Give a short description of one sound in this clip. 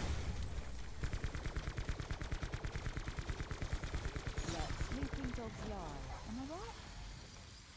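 A gun fires rapidly in a steady burst.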